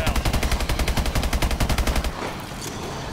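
A rifle fires in a rapid, steady burst.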